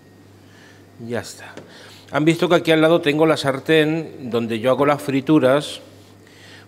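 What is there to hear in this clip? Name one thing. A middle-aged man speaks calmly into a clip-on microphone, close by.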